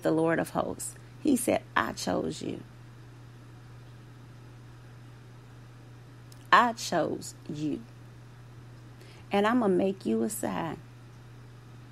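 A woman speaks through a microphone in short phrases with long pauses.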